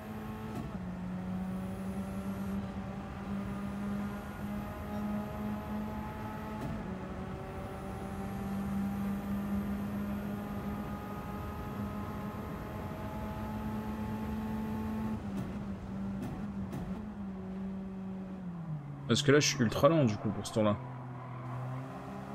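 A racing car engine drones steadily, climbing in pitch through each gear and dropping away as the car slows.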